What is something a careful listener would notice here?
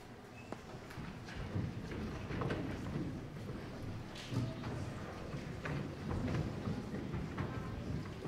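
Children's feet thump and shuffle on a wooden stage.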